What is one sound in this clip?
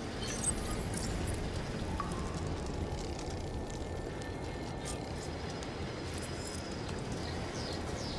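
A fire crackles in a metal brazier.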